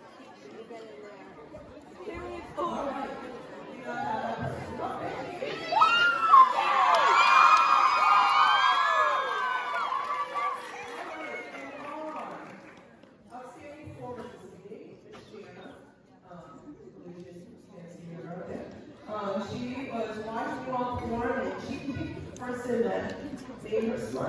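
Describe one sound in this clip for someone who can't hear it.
An older woman speaks through a microphone over loudspeakers.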